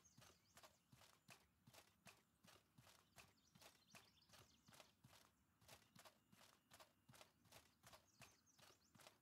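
Footsteps thud steadily on a dirt path.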